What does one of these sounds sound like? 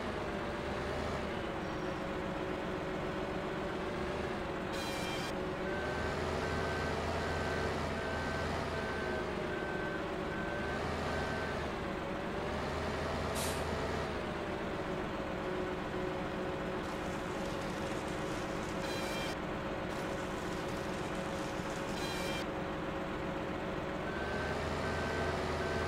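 A heavy diesel engine hums steadily and rises and falls in pitch as it works.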